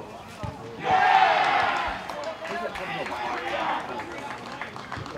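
A small crowd cheers and shouts outdoors.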